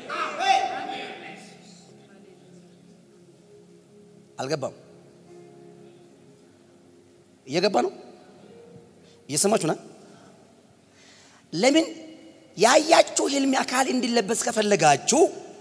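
A young man preaches into a microphone in bursts, with echoing pauses between phrases.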